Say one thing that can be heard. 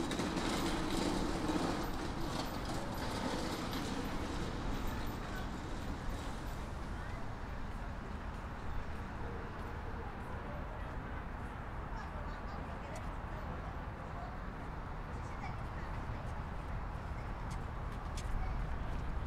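Footsteps tap on paving nearby.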